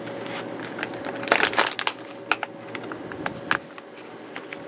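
A plastic wrapper crinkles up close.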